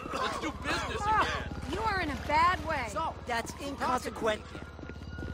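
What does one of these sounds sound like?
A man shouts angrily nearby.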